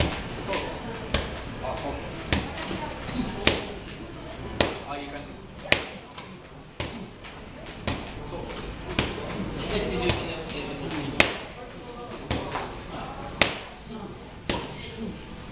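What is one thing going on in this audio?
Feet shuffle and stamp on a canvas floor.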